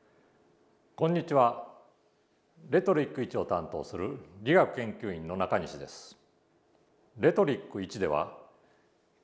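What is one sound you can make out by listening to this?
A middle-aged man speaks calmly into a clip-on microphone.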